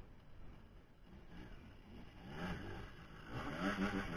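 A motorcycle engine revs nearby.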